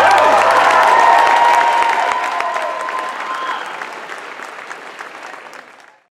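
An audience applauds and the clapping fades away.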